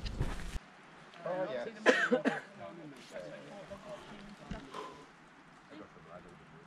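Several people chat nearby outdoors.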